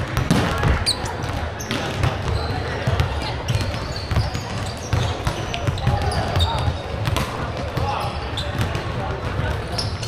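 Children shout and chatter throughout the echoing hall.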